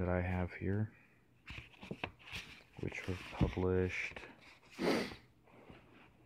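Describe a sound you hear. Paper pages rustle as a book is leafed open.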